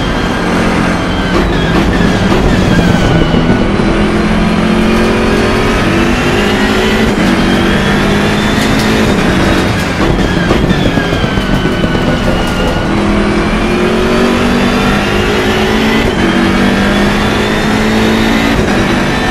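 A race car engine roars close by, revving up and down through the gears.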